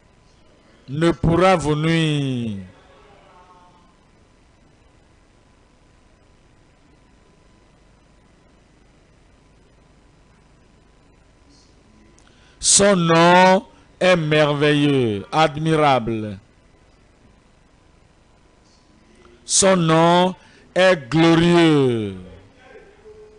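A man sings loudly through a loudspeaker in short, separate phrases with long pauses between.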